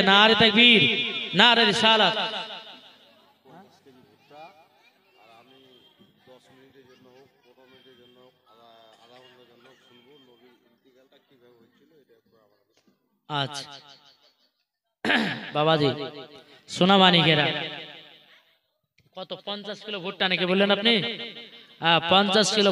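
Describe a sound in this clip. A man preaches passionately into a microphone, his voice loud and echoing through loudspeakers.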